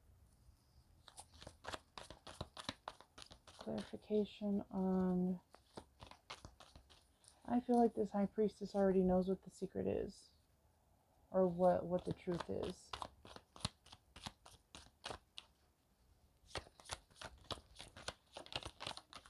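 Playing cards tap and slap onto a wooden table.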